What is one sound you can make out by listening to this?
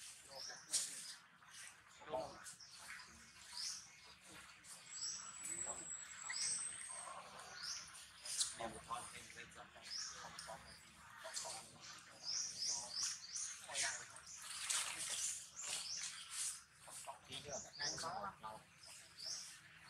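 A monkey chews and smacks on food.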